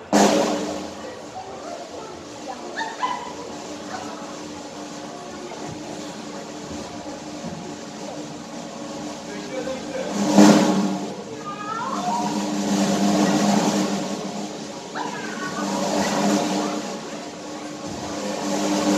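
An orchestra plays steadily in a large echoing hall.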